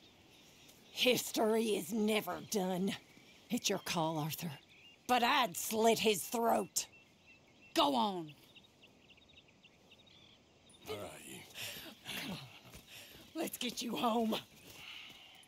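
A young woman speaks with anger and urgency, close by.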